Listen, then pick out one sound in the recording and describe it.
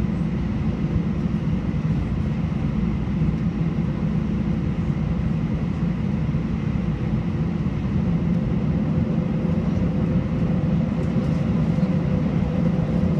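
An aircraft engine rumbles steadily from inside the cabin.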